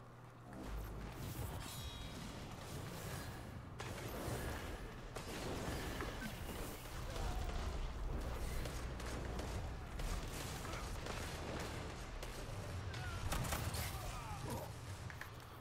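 Gunfire cracks and booms from a game.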